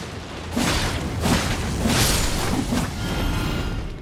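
A sword slashes and strikes a creature with heavy swooshing hits.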